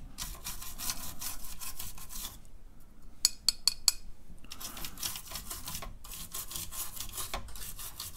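A toothbrush scrubs briskly over keyboard keys with a dry, rapid scratching.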